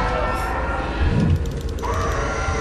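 A fiery blast bursts in a video game.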